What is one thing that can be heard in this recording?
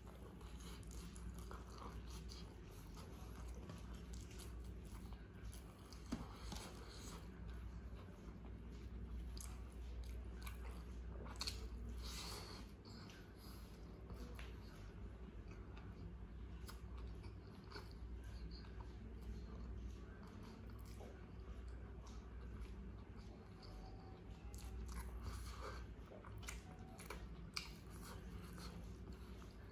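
Fingers squish and rustle through rice close up.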